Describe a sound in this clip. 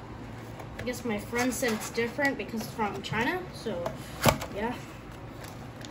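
Cardboard packaging rustles and scrapes as a box is opened.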